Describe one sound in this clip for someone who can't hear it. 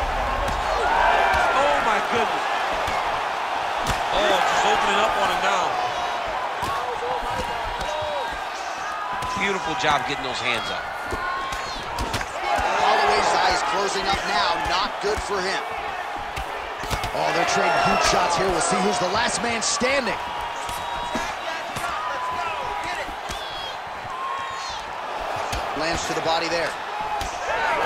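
Punches land with dull thuds.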